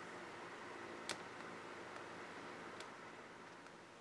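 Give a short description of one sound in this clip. Buttons on a remote control click softly.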